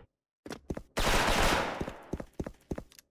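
A rifle fires a short burst of gunshots.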